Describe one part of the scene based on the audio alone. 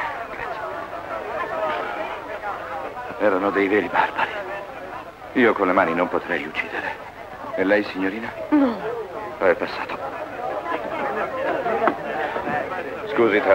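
A man speaks in a hoarse voice.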